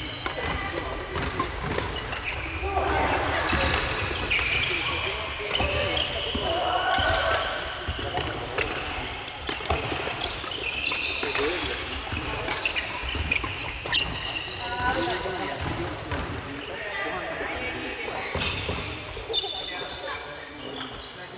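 Young people call out and chatter in a large echoing gym.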